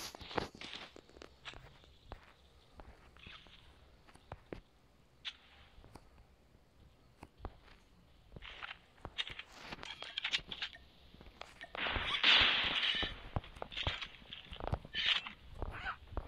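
A bandage is unrolled and wrapped with a rustle.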